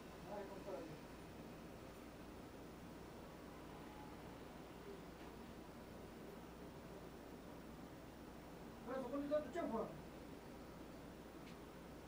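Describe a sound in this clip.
A paintbrush softly strokes across canvas.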